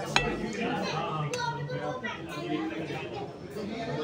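A fork clinks and scrapes against a plate.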